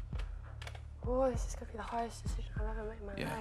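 A young woman speaks hesitantly and close to a microphone.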